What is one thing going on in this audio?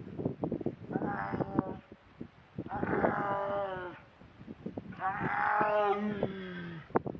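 A tigress gives a series of low, moaning calls close by.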